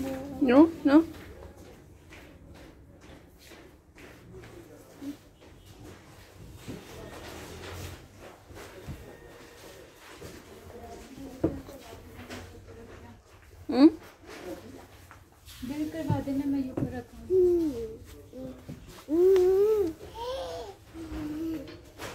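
A little girl squeals and babbles close by.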